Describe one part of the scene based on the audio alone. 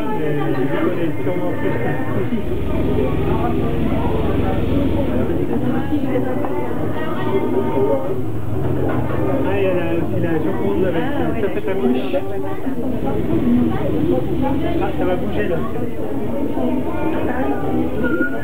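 A crowd of adults chatters and murmurs nearby.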